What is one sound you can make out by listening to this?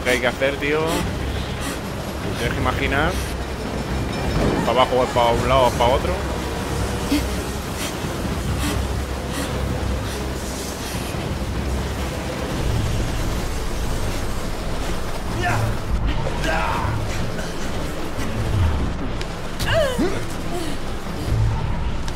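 Strong wind rushes past.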